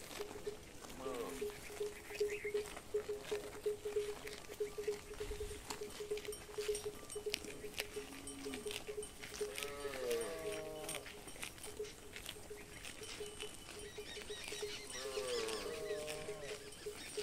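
Cattle moo loudly nearby.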